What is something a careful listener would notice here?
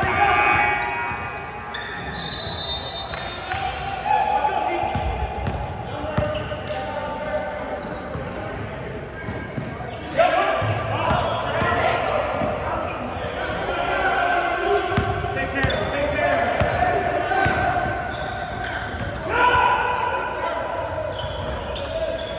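Men shout to each other across the court.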